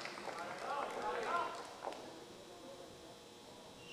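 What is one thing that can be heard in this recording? A ball clicks against paddles and a table.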